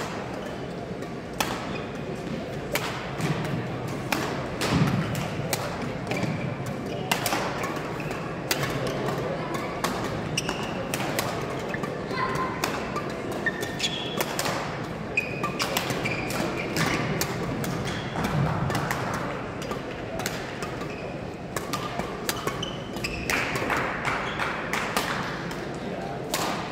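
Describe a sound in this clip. Rackets strike a shuttlecock with sharp pops in a rally.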